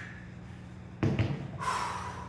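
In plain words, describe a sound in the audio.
Heavy weights thud down onto the floor.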